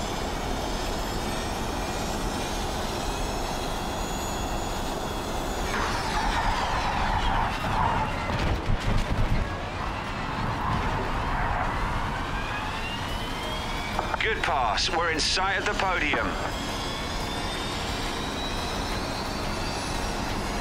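An electric single-seater race car's motor whines, rising and falling in pitch as it slows for a corner and speeds up again.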